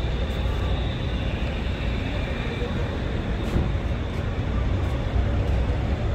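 Footsteps tap on a pavement nearby.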